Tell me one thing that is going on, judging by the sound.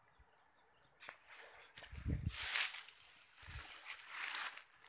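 Leafy plants rustle and swish close by.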